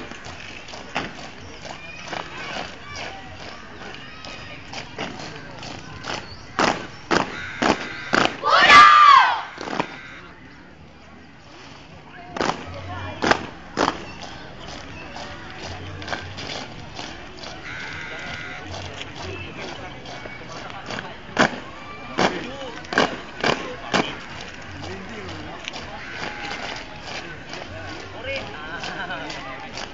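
Many boots stamp hard on paving in unison, outdoors.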